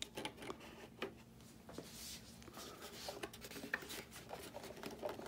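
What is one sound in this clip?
Plastic parts knock and click as they are handled and fitted together close by.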